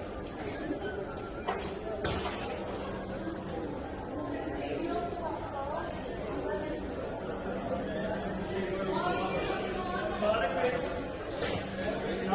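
A crowd of men and women talk in the distance in a large echoing hall.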